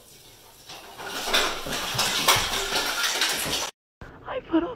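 An artificial Christmas tree crashes over onto a tile floor, its ornaments rattling.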